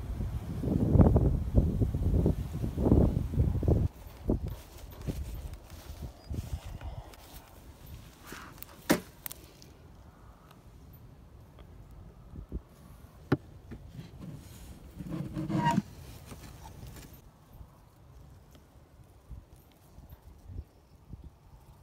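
Bees buzz around an open hive.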